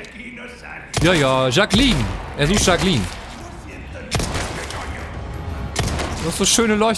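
Pistol shots ring out.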